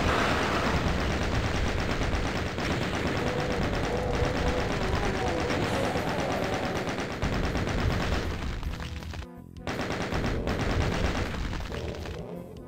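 A gun fires in rapid, steady bursts.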